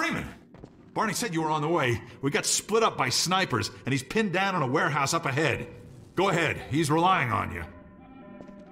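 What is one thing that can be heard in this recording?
A man speaks close by with urgency.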